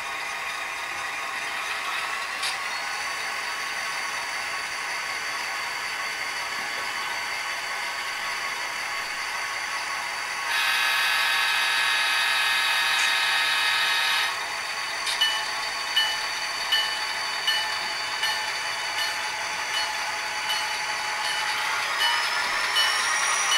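A model diesel locomotive hums and rumbles steadily.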